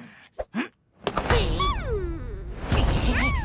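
A cartoon vampire yells loudly.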